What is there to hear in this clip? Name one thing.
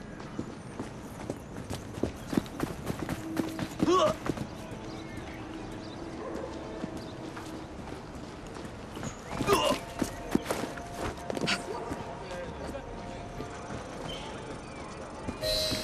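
Footsteps run quickly over cobblestones.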